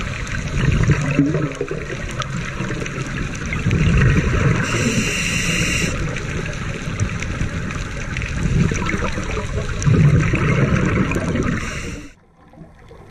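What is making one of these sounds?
Scuba divers exhale through regulators, and bubbles gurgle and rumble underwater.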